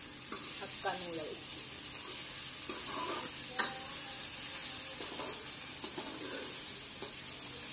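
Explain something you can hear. A metal spatula scrapes and clinks in a wok.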